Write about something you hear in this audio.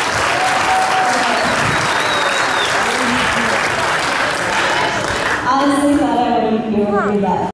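A young woman speaks through a microphone and loudspeaker.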